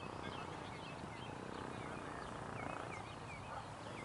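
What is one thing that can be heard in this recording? A cricket bat knocks a ball once, outdoors.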